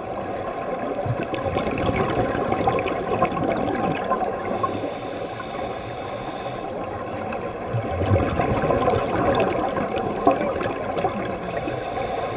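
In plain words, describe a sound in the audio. Bubbles gurgle and rush in bursts as a diver breathes out underwater.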